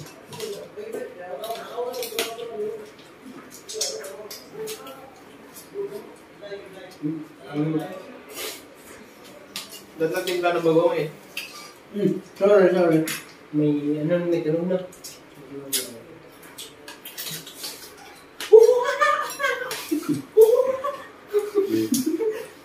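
Spoons and chopsticks clink against bowls and plates.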